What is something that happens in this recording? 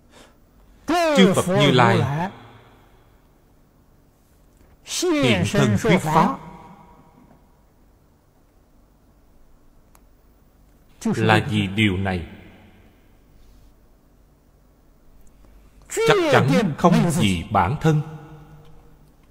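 An elderly man speaks calmly into a close microphone, in short phrases with pauses.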